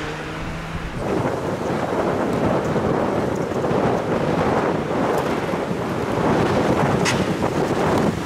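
A second rally car engine roars closer and louder.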